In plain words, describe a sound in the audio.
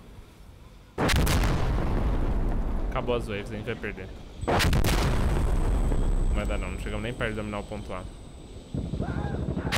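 Gunfire cracks and booms in bursts.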